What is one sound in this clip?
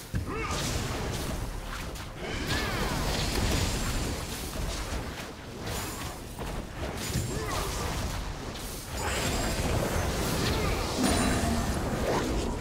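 Magical spell blasts crackle and boom in quick bursts.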